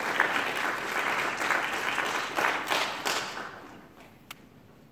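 An audience applauds loudly in an echoing hall, then dies away.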